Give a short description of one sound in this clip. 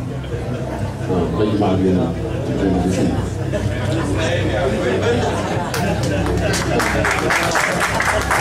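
A man speaks into a microphone, heard through a loudspeaker in an echoing room.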